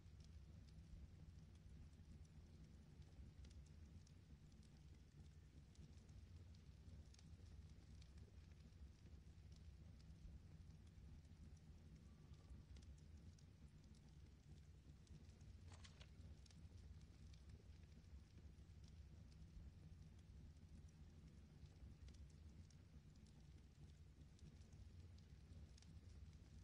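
Soft clicks of game menu selections tick now and then.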